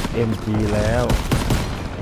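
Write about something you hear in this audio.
A rifle fires sharp gunshots.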